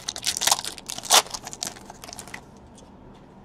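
Hands tear open a foil card pack with a crinkling rip.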